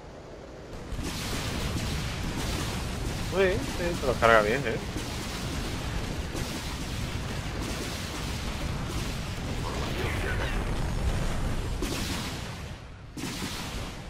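Rapid gunfire rattles and booms in a battle.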